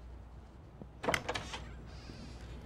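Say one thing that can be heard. A heavy wooden door opens with a click of its latch.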